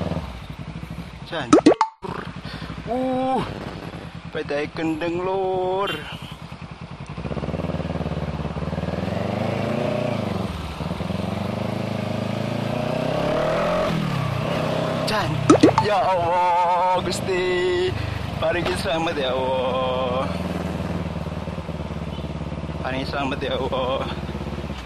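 A motorcycle engine hums and revs up and down as it rides along.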